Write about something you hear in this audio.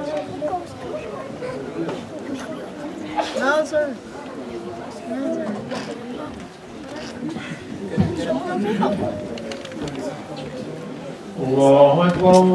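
Several men talk quietly among themselves.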